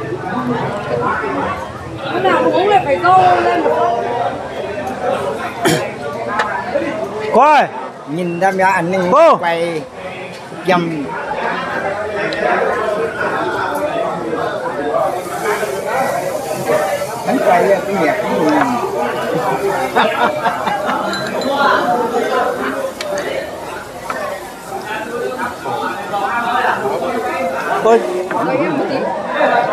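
A crowd murmurs in the background.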